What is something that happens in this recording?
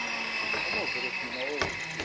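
Adults talk outdoors nearby.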